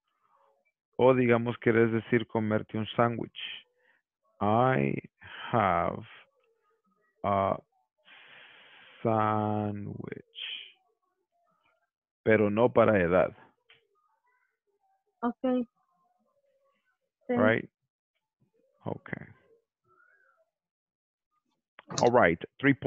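A young man speaks calmly through an online call, in short bursts with pauses.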